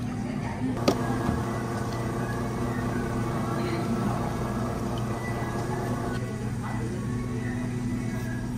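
Milk glugs as it pours from a carton into a cup.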